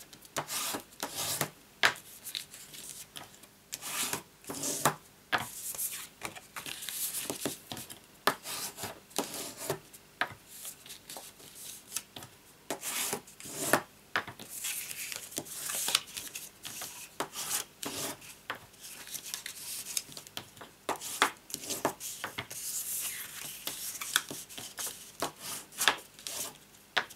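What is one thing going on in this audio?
A bone folder scrapes along a fold in cardstock.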